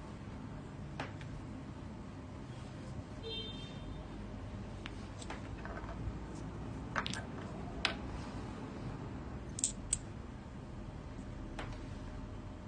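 Hard objects click and tap against each other as they are handled.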